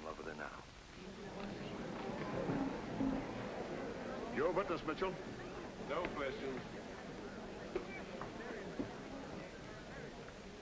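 A crowd murmurs and chatters in a large hall.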